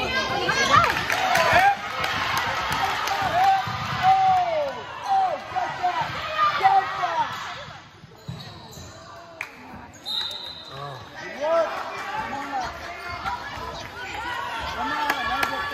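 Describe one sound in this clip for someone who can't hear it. A crowd of spectators talks and cheers in a large echoing gym.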